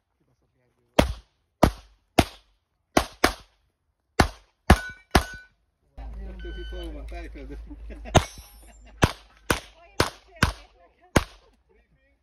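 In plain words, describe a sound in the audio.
A pistol fires a series of sharp, loud shots outdoors.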